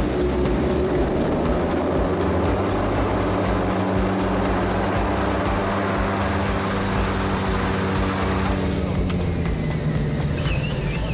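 Aircraft engines roar steadily as a small plane rolls down a runway.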